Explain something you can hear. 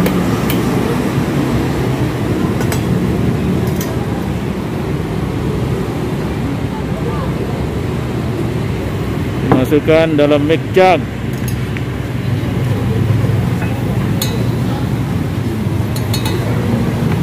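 Metal cups and utensils clink and tap.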